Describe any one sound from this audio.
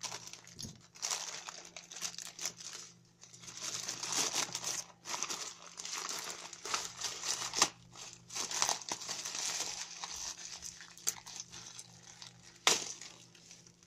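A plastic mailing bag crinkles and rustles as hands tear it open.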